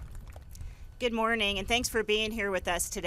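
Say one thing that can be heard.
A second woman speaks calmly into a microphone over loudspeakers.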